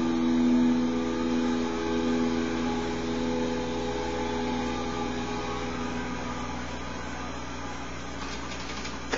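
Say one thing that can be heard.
Rock music plays from a television speaker, heard through the room.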